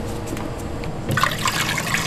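Water pours and splashes.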